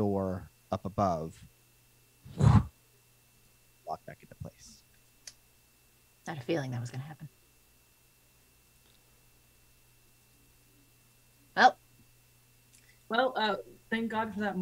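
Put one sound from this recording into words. Men and women talk with animation in turns over an online call.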